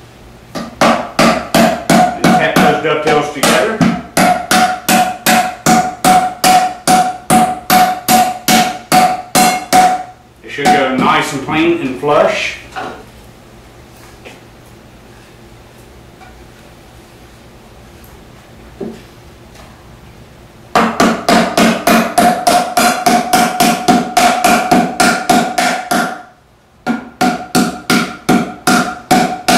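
A mallet taps rapidly and steadily on wood.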